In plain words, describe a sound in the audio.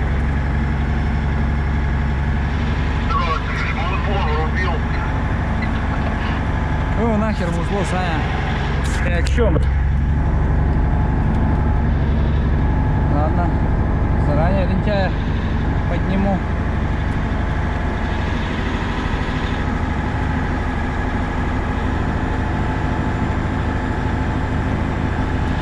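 Tyres crunch and rumble over packed snow.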